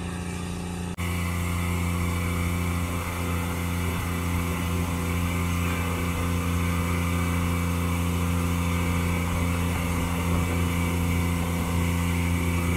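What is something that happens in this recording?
Grain pours into a trailer with a rushing hiss.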